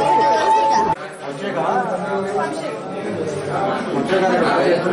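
Men and women chatter close by in a crowded room.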